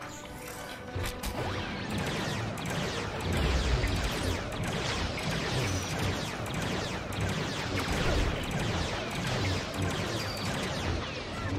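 Blaster shots fire rapidly with zapping bursts.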